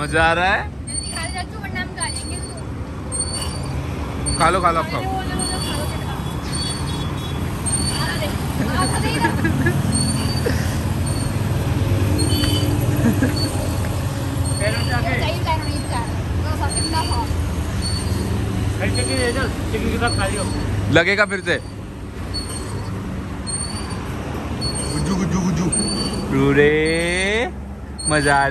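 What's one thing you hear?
A swing creaks with a steady, regular squeak.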